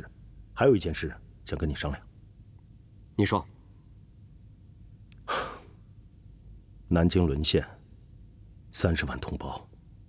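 A young man speaks calmly and seriously, close by, in short phrases with pauses.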